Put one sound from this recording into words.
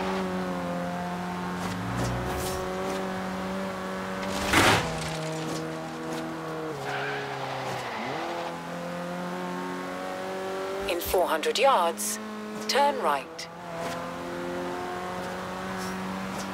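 A car engine hums steadily at high revs, dipping briefly as gears change.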